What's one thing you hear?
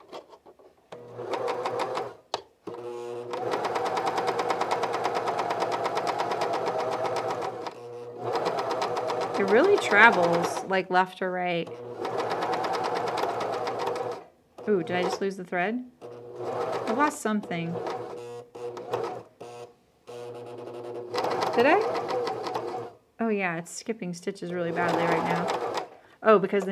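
A sewing machine runs with a steady, fast whirring hum, stopping and starting.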